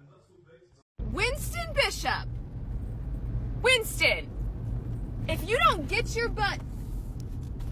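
A dog whines in high, rising and falling cries inside a car.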